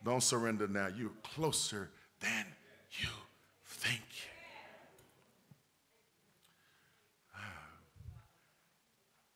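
A middle-aged man preaches forcefully through a microphone in a large echoing hall.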